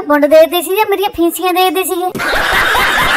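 A man scolds angrily in a high, squeaky cartoon voice.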